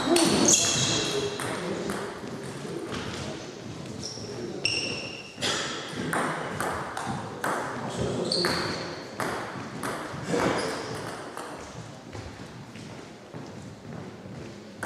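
A table tennis ball clicks back and forth between paddles and table in a large echoing hall.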